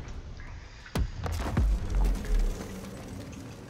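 Explosions boom outside with deep rumbling.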